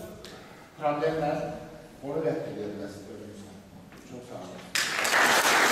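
An elderly man speaks loudly and with animation in a large echoing hall.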